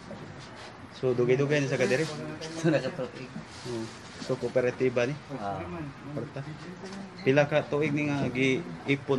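A middle-aged man speaks firmly and with animation, close by.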